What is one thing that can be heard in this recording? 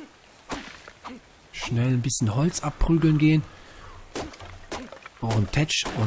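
A hatchet chops into wood with dull knocks.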